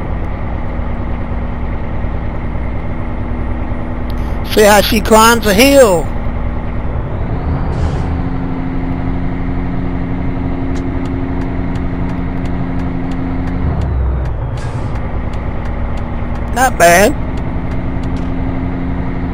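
A truck engine drones steadily as the truck drives along a road.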